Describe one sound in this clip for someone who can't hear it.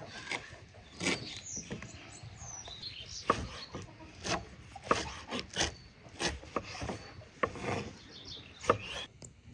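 A knife chops on a wooden board with sharp knocks.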